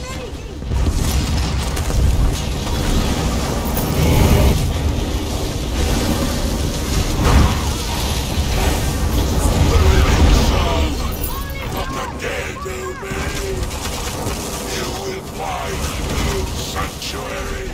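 Magic spells crackle and boom in a fierce battle.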